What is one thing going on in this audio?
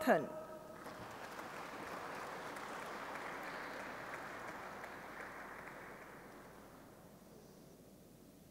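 An audience applauds in a large hall, then the clapping fades away.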